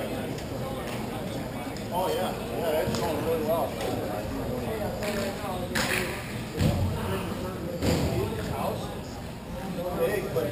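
Players' skate wheels roll across a hard floor in a large echoing hall.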